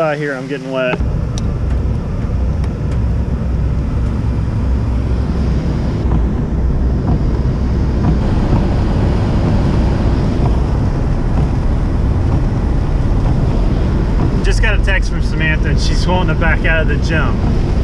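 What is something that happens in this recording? Tyres hum on a wet road.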